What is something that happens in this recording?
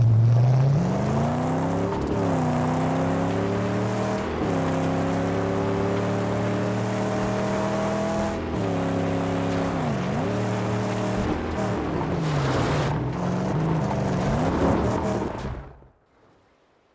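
A car engine roars and revs, rising and falling in pitch as gears shift.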